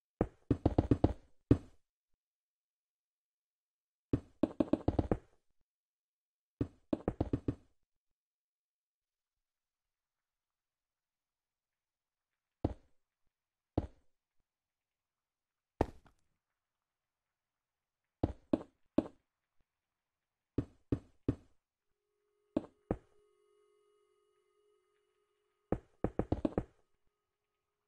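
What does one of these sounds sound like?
Blocks are placed in a video game with short, quick thudding clicks.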